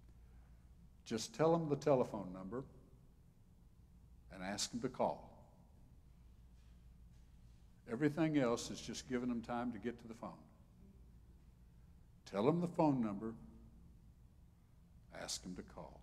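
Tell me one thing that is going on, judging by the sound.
An elderly man speaks through a microphone with emphatic pauses.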